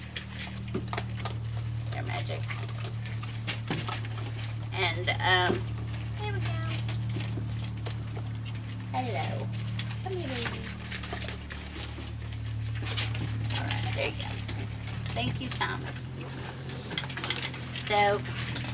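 Raccoons crunch and chew food.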